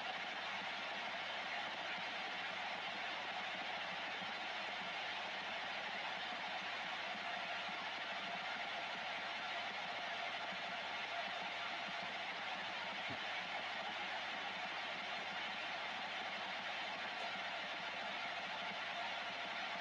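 Radio static hisses steadily from a receiver.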